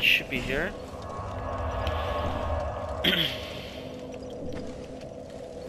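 A bonfire crackles and roars as it flares up.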